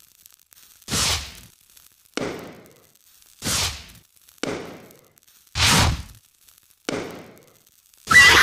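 Fireworks pop and bang one after another.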